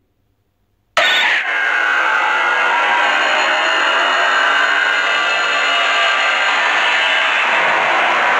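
A bright, shimmering game sound effect swells and rings on steadily.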